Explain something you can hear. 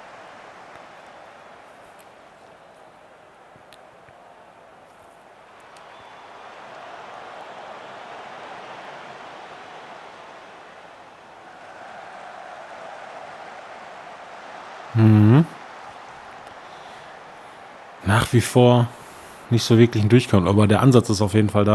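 A stadium crowd murmurs and chants steadily in the distance.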